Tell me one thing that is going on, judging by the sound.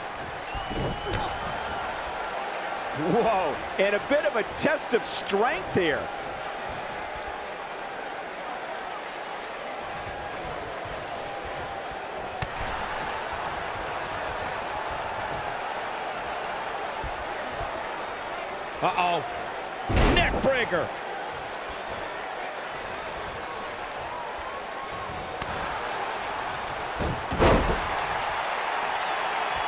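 A large crowd murmurs and cheers steadily in an echoing arena.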